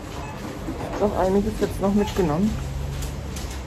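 A woman speaks close up, sounding muffled.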